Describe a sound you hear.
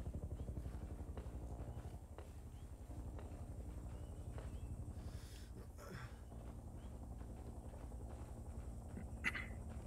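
Footsteps thud on dry dirt.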